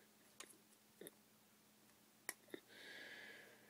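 Small plastic toy bricks click and clack.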